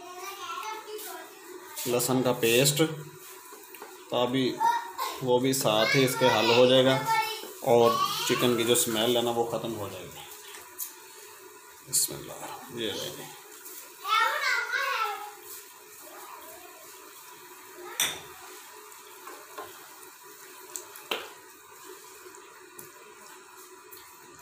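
A wooden spatula scrapes and knocks against a pan as food is stirred.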